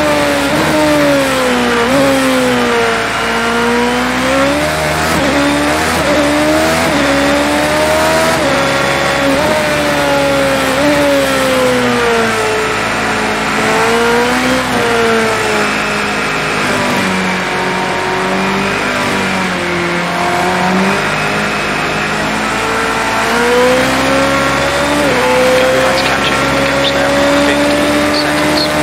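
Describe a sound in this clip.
Tyres hiss over a wet track.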